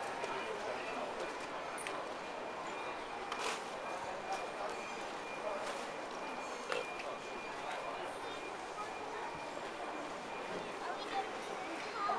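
Bare feet pad softly on stone paving.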